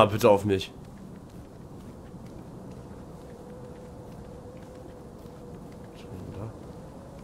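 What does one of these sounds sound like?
A young man talks close to a microphone in short bursts.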